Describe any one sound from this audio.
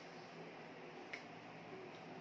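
A man's hands clap together softly.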